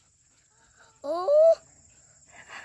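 A young boy speaks up close.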